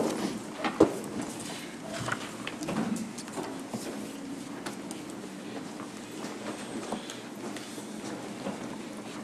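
A man speaks calmly through a microphone in a large, echoing room.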